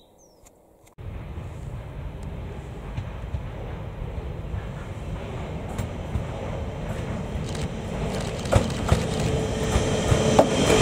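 A train approaches along the track, its rumble growing louder.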